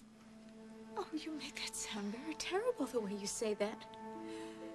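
An older woman speaks softly and gently close by.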